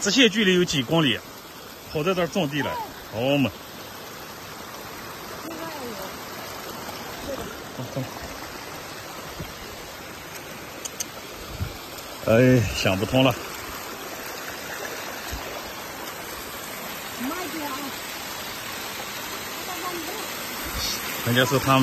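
A small stream of water trickles and splashes nearby.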